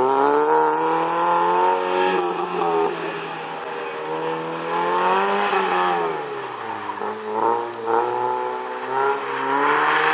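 A small car engine revs hard, rising and falling in pitch as it changes gear.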